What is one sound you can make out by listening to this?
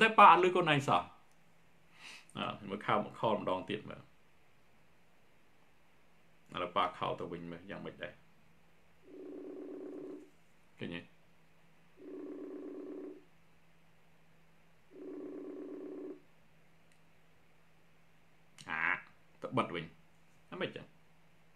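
A man speaks with animation, with pauses.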